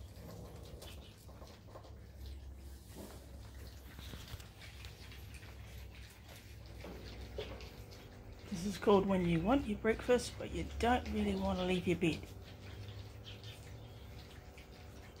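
Puppies crunch and chew dry food from a bowl.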